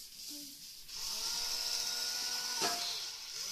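A remote-control toy forklift's electric motor whirs.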